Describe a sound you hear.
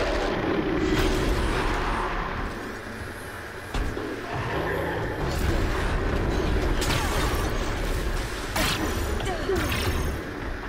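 Ice and energy blasts burst with loud cracks.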